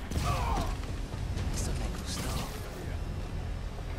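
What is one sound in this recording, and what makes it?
A web line shoots out with a quick whoosh.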